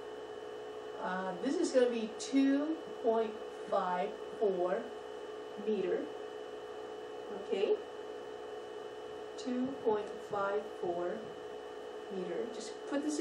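A woman speaks calmly, explaining, close by.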